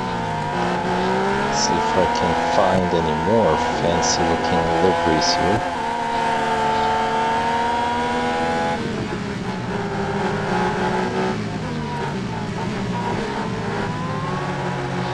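A racing car engine whines loudly at high revs, rising and falling as gears change.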